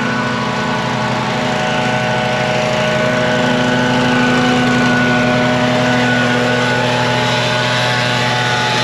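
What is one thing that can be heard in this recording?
A lawn mower engine drones steadily up close.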